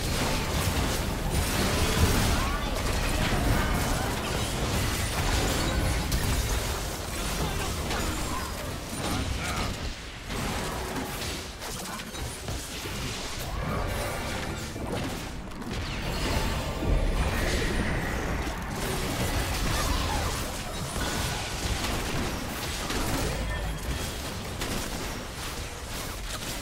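Spell effects crackle and blast as game characters fight.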